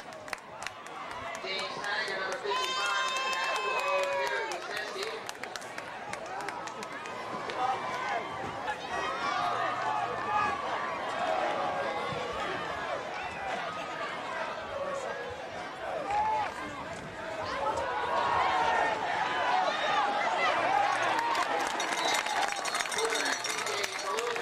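A crowd of spectators chatters outdoors.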